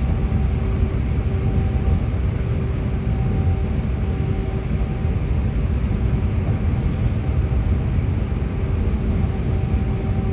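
A bus engine rumbles steadily from inside while driving.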